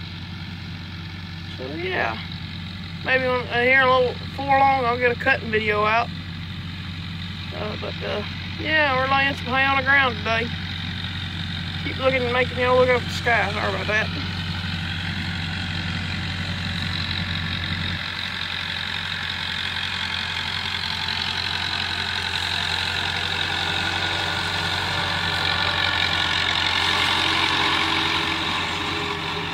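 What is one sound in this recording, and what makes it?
A tractor engine rumbles steadily in the distance.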